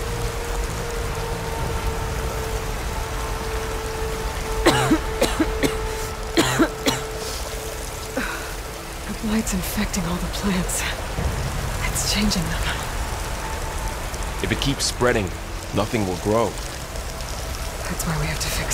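Fern fronds rustle as someone creeps through dense plants.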